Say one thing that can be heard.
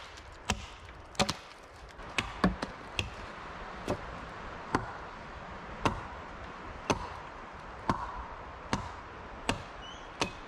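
Sharp wooden knocks ring out at a steady pace, outdoors in a quiet forest.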